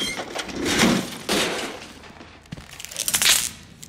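A metal panel cover clanks as it is pried open.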